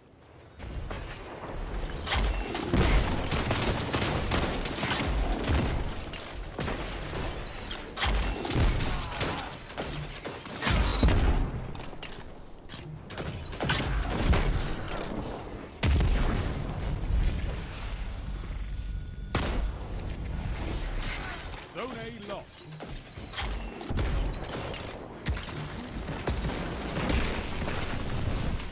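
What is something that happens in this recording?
Gunfire cracks and booms in rapid bursts.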